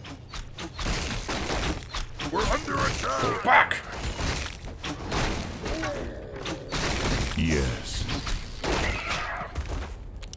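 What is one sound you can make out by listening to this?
Swords clash and thud in a skirmish.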